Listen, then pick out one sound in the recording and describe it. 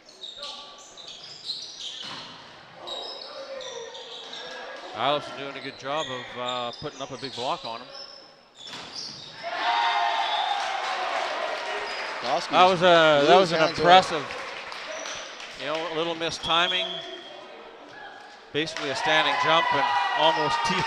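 A volleyball is struck with hard slaps.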